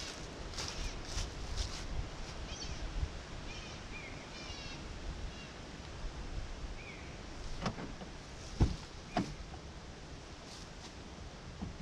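Footsteps rustle through dry leaves on grass.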